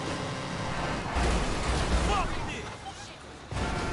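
A vehicle crashes with a loud metallic thud.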